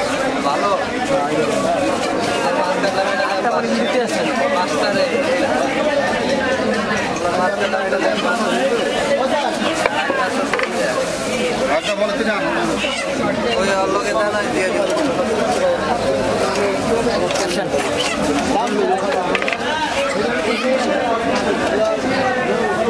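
A knife chops fish on a wooden block with dull knocks.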